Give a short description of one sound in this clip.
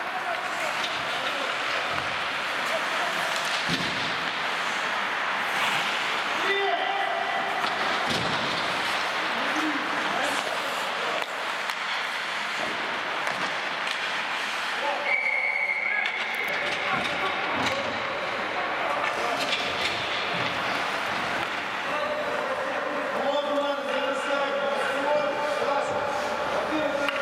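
Sounds echo around a large hall.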